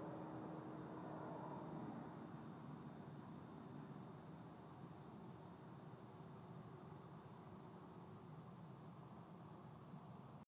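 A man strums an acoustic guitar softly, close by.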